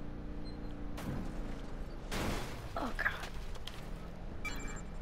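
A truck bumps and thuds over rough terrain.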